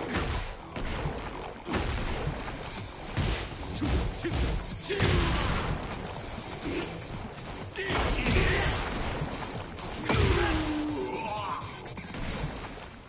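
Heavy blows thud and crack in a fight.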